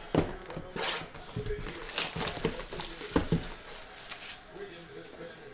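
Plastic wrap crinkles and rustles as it is torn off a box.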